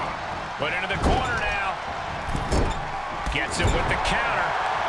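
Bodies thud heavily onto a wrestling ring.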